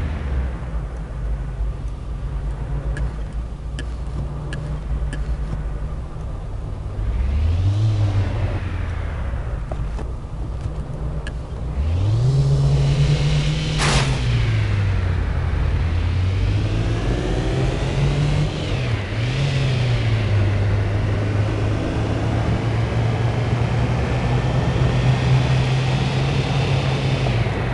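Tyres hum steadily on a road.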